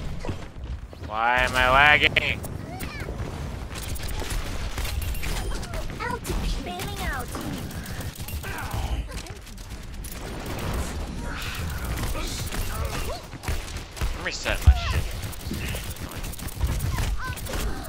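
Pistol shots fire rapidly.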